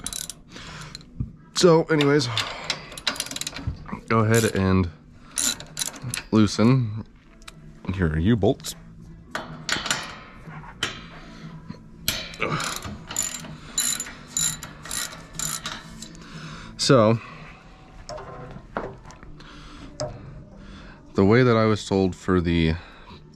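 A machine hums steadily with spinning belts and wheels.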